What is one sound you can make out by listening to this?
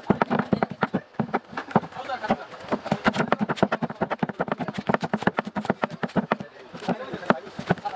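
A taut string rubs and snaps rapidly against a wooden handle as it is wound.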